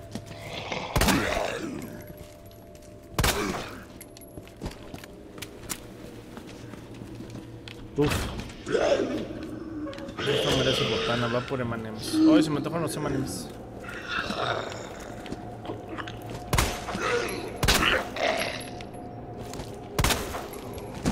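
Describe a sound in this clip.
Gunshots ring out one at a time with a short echo.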